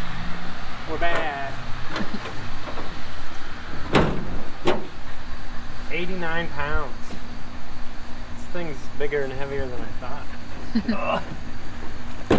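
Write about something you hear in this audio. A man talks calmly nearby outdoors.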